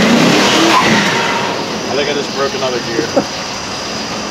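Tyres hiss on the road as a truck drives off.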